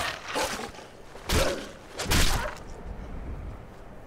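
Heavy weapon blows thud hard, one after another.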